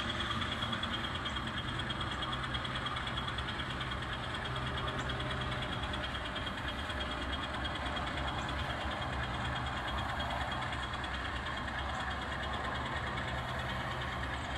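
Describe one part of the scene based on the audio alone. A small model train motor hums steadily as the train rolls slowly along the track.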